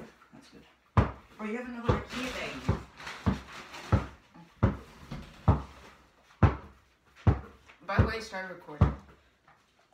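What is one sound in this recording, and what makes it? A basketball bounces on a hard floor with sharp thuds.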